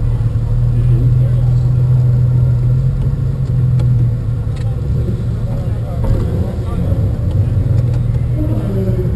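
A crowd murmurs and chatters in the background outdoors.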